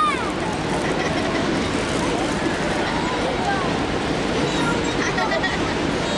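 A young girl talks close by.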